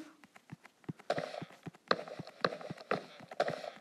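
A block is placed with soft knocks.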